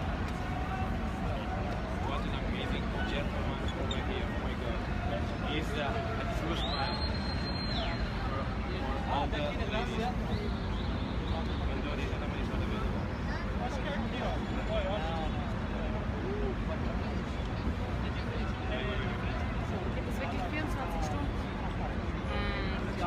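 A large outdoor crowd chatters and murmurs all around.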